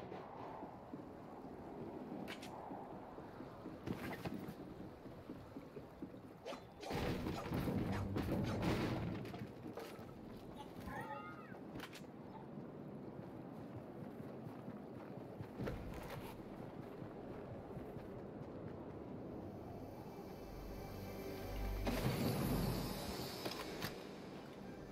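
Footsteps run quickly across wooden boards and snow.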